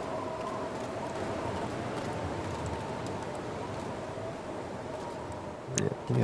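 A strong wind howls steadily outdoors in a snowstorm.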